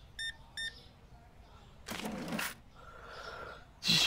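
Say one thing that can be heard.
A cash drawer slides open.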